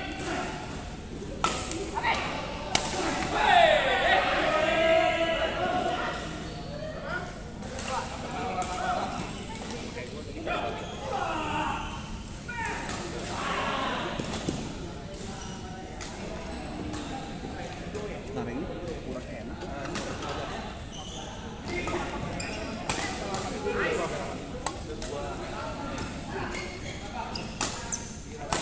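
Men talk and call out around the court.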